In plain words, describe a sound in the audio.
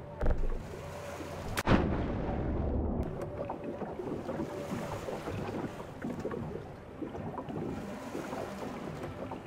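Water sloshes and splashes with each step of someone wading through it.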